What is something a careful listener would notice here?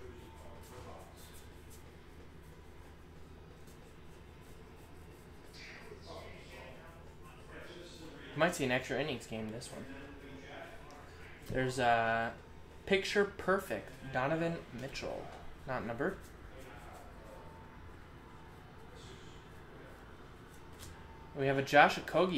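Cards shuffle and rustle softly in hands.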